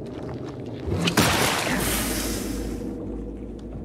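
A heavy weapon swings through the air with a loud whoosh.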